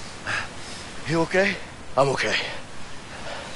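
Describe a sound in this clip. A man asks a question with concern.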